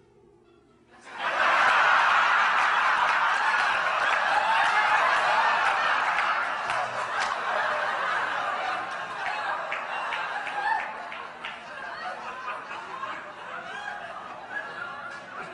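A monkey shrieks and chatters loudly.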